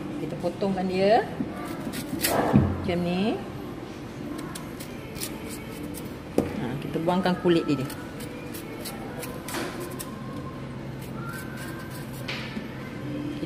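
A knife scrapes and slices the skin off a green banana.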